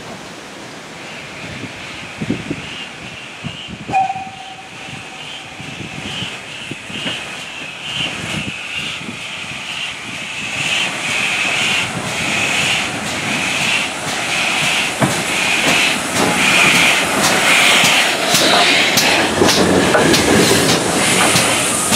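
Metal brakes squeal as the train slows.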